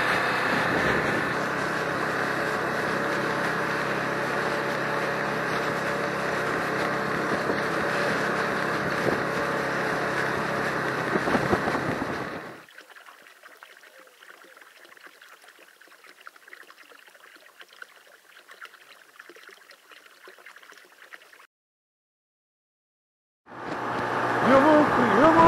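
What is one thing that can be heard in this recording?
A motorcycle engine rumbles steadily while riding along a road.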